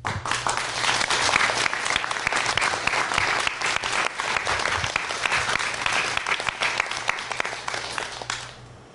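A large audience applauds loudly in a hall, then the applause fades.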